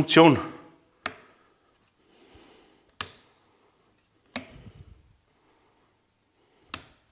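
A light switch clicks sharply.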